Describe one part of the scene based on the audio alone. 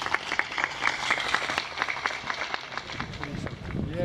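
A crowd claps in steady applause.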